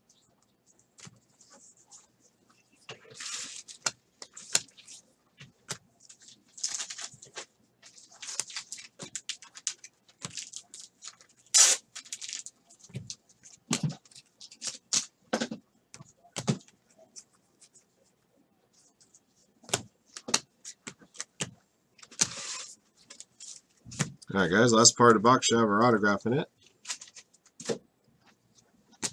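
Trading cards rustle and slap softly as they are flipped one by one.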